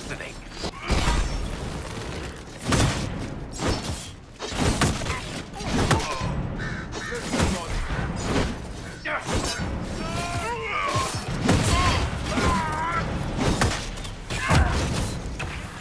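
Men grunt and shout during a fight.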